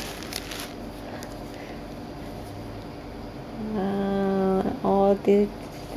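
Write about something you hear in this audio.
Lace fabric rustles softly between fingers.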